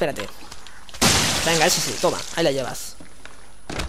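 A pistol fires loud shots indoors.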